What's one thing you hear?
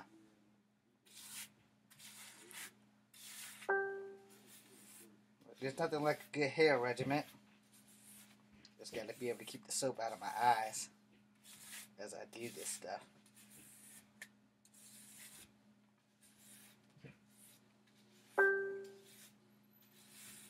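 A comb scrapes through hair.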